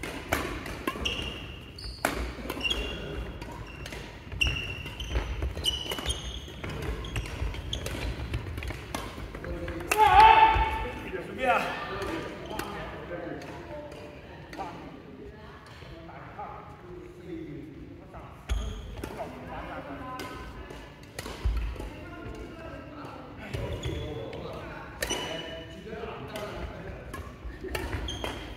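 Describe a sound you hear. Rackets hit a shuttlecock back and forth in a large echoing hall.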